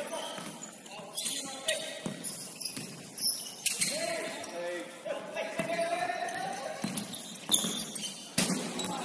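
Shoes squeak sharply on a hard indoor court.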